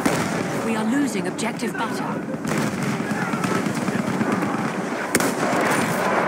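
A rifle fires in sharp shots.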